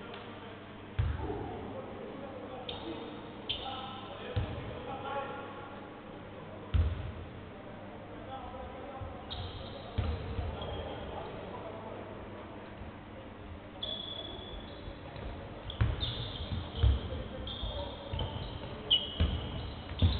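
A basketball bounces on a wooden court with echoing thuds.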